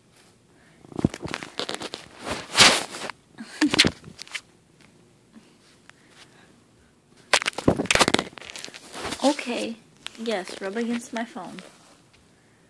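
A cat scuffles and paws about on a carpet.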